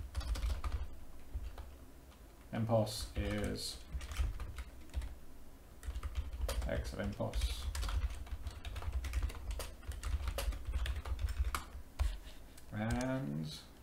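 Keyboard keys clatter in quick bursts.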